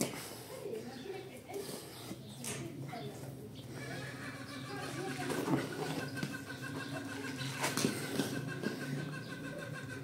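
Hands press and rub damp clay with soft, gritty scraping.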